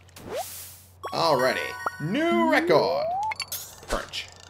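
A bright chime rings out as a fish is landed.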